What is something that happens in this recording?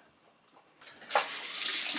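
Water runs from a tap.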